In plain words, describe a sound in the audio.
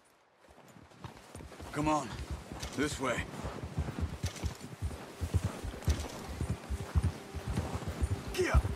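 Horses' hooves thud through deep snow.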